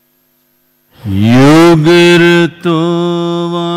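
An elderly man chants in a deep, long, drawn-out voice through a microphone.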